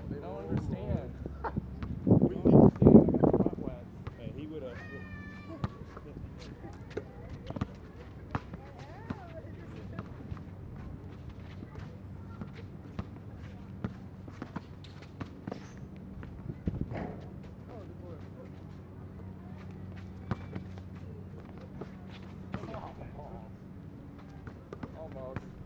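A basketball bounces on hard pavement outdoors.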